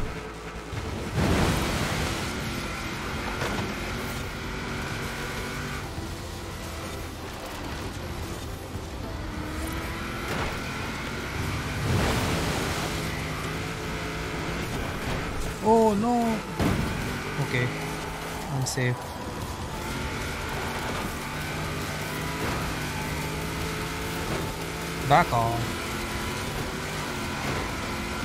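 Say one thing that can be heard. A car engine revs and roars at speed.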